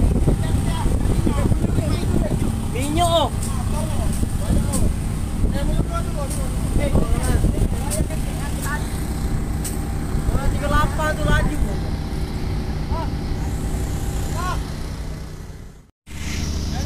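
Flames roar and crackle on a burning boat.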